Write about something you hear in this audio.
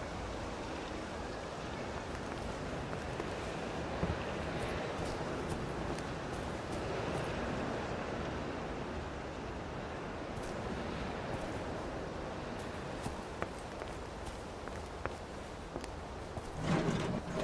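Footsteps fall steadily on grass and gravel.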